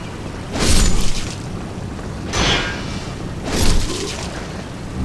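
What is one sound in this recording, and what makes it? Sword blows strike with sharp, heavy hits.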